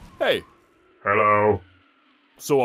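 A man grunts in pain.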